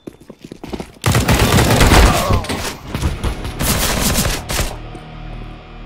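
A knife slashes and stabs with sharp, loud swishes.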